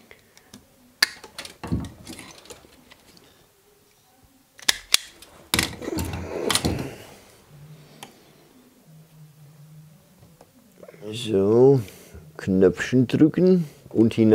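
A screwdriver clicks and scrapes against metal terminals.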